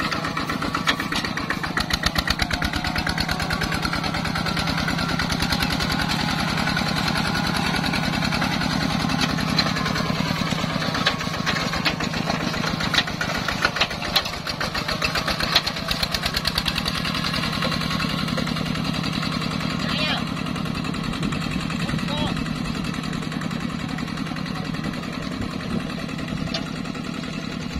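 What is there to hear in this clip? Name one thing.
A small diesel engine chugs steadily close by.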